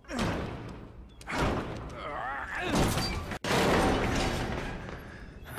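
A heavy metal door rattles and scrapes as it is pushed open.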